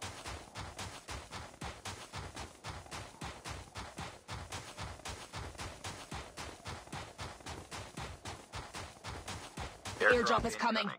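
Footsteps run quickly and steadily over hard ground.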